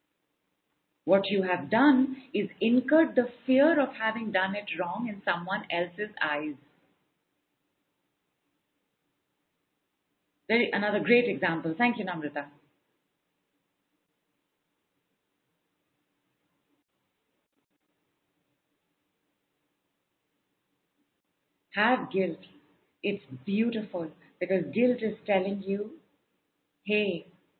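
A woman speaks calmly and clearly into a close microphone, with pauses.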